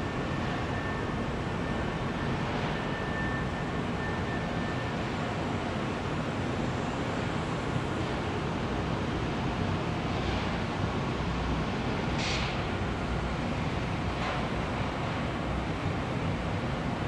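A machine hums and rumbles steadily in a large room.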